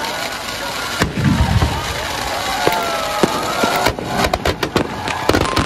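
Firecrackers bang sharply in quick bursts.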